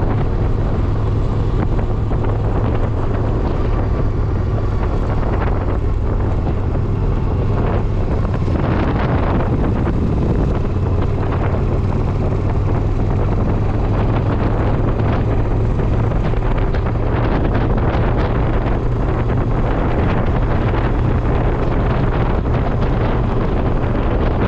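Wind rushes past the car's open window.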